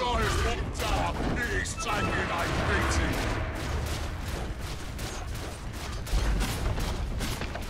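Magic spells crackle and weapons clash in a hectic fight.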